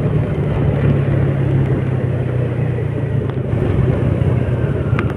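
A motor scooter engine hums steadily up close.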